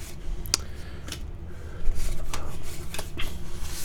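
Trading cards rustle and slide against each other as they are handled.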